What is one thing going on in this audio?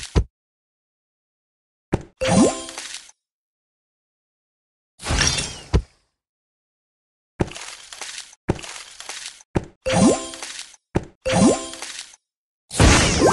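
Game blocks pop and burst with bright chiming effects.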